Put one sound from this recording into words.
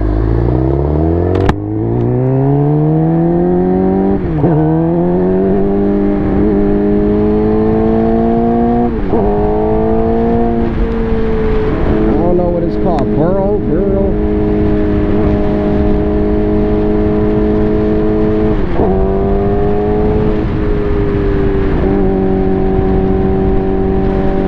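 A motorcycle engine revs up hard and shifts through the gears.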